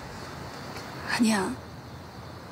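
A young woman speaks softly and briefly, close by.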